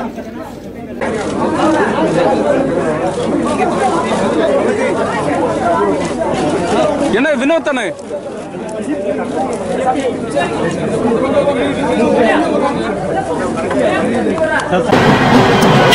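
A crowd of men murmurs and talks.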